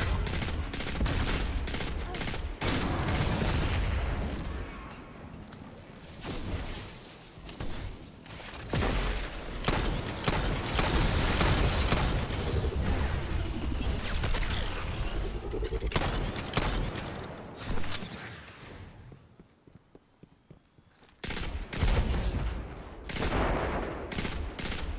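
Guns fire rapidly in loud bursts.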